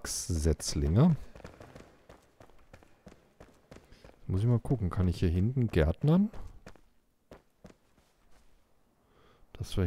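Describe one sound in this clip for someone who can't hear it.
Footsteps scuff over stone and grass.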